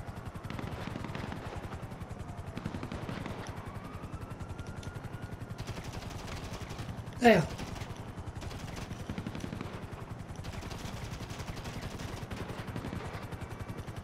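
A helicopter's rotor thrums in the distance.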